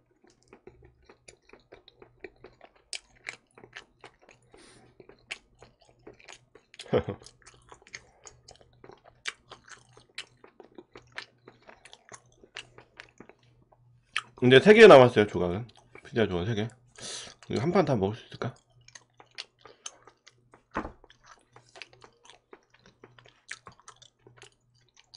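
A man chews food close to a microphone, with soft wet smacking sounds.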